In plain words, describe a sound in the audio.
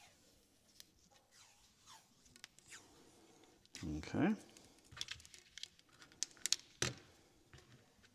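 Plastic pump parts click and rattle as they are handled.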